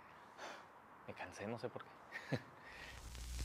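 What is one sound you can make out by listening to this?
A man speaks briefly and quietly nearby.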